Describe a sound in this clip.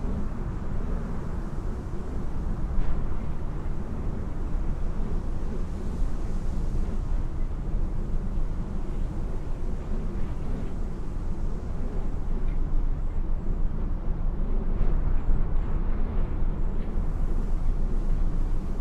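A jet engine roars steadily as an airliner rolls down a runway nearby.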